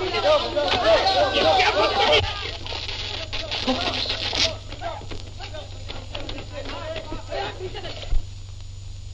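A man shouts excitedly nearby.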